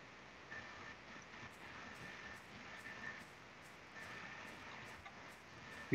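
Footsteps crunch through dry grass.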